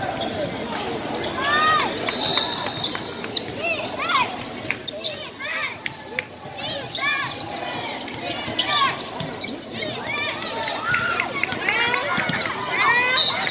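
Players and onlookers murmur and call out in a large echoing hall.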